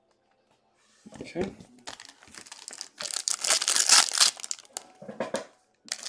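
Foil wrapping crinkles and tears loudly close by.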